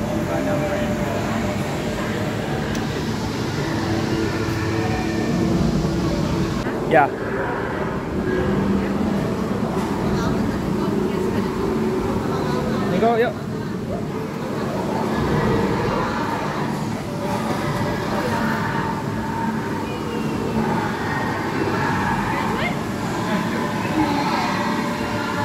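A crowd of people chatter in an echoing indoor space.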